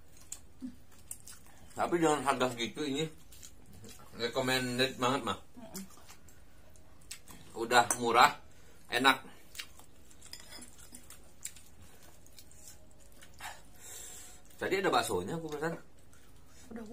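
People chew and slurp noodles.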